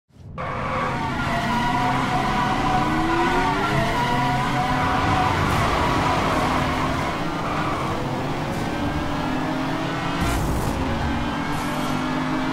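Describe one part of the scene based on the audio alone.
A sports car engine roars loudly at high revs.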